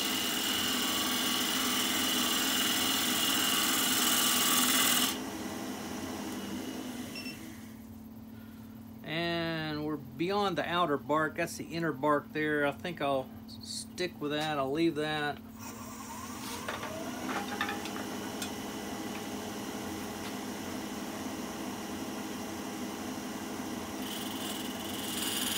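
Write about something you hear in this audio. A wood lathe spins with a steady hum.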